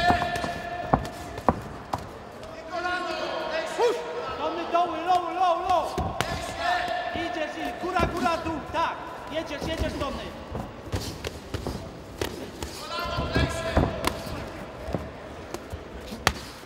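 Boxing gloves thud against bodies in quick punches.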